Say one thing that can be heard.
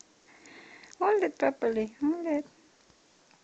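A baby coos and babbles close by.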